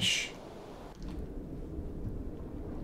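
Water rumbles low and muffled underwater.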